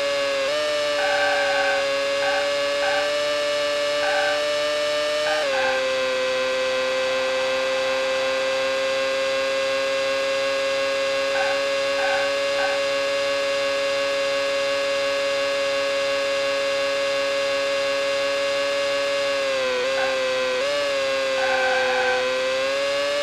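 Tyres squeal in short bursts through the corners.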